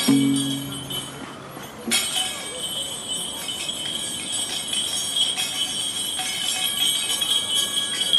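Bare feet shuffle and slap softly on pavement.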